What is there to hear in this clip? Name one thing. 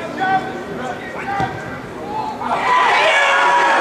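A football is struck hard with a thud.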